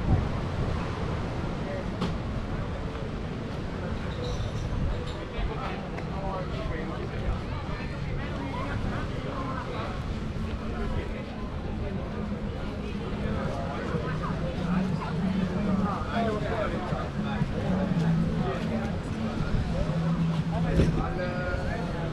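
A crowd of adults chatters nearby.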